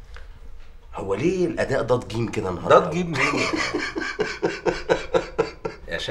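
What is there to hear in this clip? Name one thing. A middle-aged man speaks in a low voice nearby.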